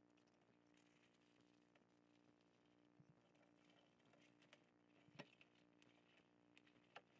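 Fabric rustles as a tool roll is folded and rolled up.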